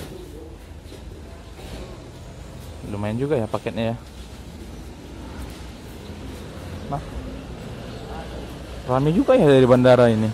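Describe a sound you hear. Sandals shuffle slowly on concrete.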